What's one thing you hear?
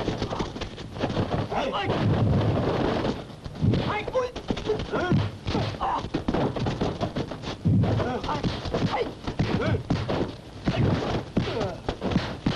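Men grunt and shout while fighting up close.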